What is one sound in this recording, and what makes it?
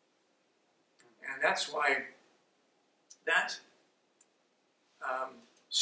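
A middle-aged man speaks earnestly into a microphone, in short phrases with pauses.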